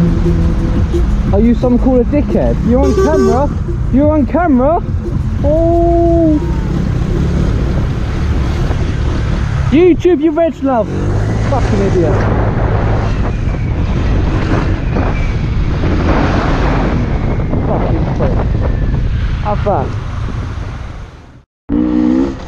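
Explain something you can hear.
A motorcycle engine hums as the bike filters through traffic.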